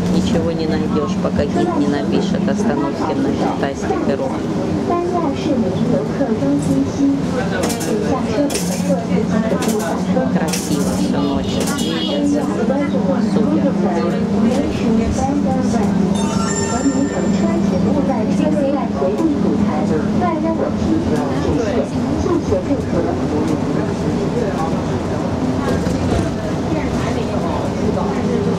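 The bus body rattles and creaks over the road.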